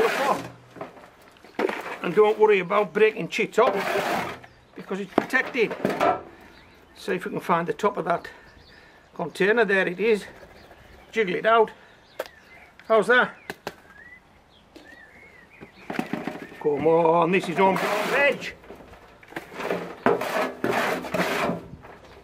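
Damp soil rustles and patters as handfuls drop into a plastic pot.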